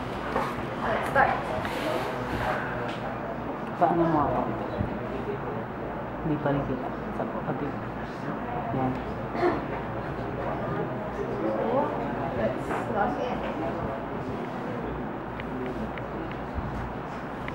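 Fingers tap on a laptop keyboard and touchpad.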